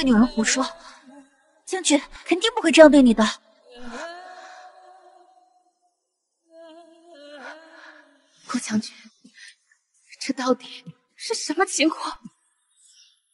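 A young woman speaks anxiously, close by.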